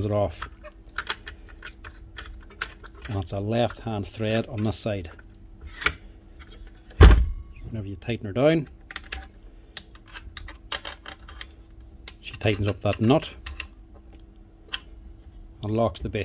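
Plastic parts of a power tool click and rattle as they are handled.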